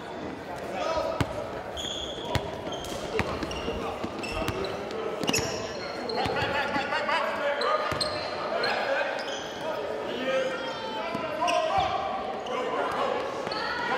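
A basketball bounces with hollow thuds on the floor.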